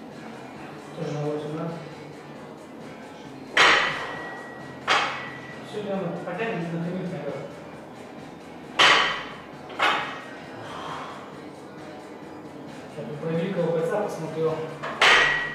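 A man grunts with effort while lifting.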